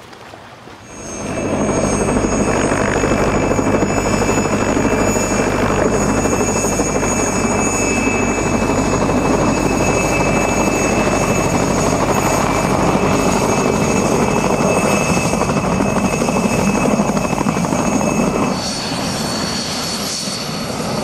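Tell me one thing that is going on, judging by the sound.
A helicopter's rotor thumps loudly close by as it hovers and lands.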